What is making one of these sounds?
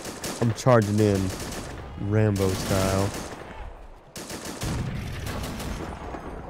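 Gunfire crackles.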